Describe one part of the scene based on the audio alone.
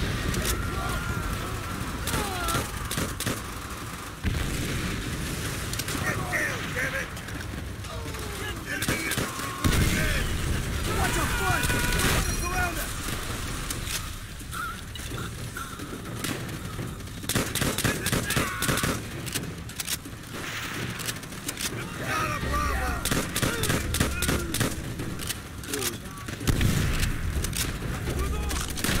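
Men shout from a distance.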